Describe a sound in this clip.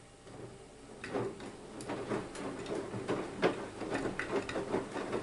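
Wet laundry thumps softly as a washing machine drum tumbles.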